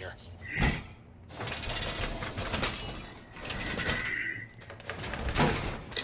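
A metal barricade clanks as it is pushed into place.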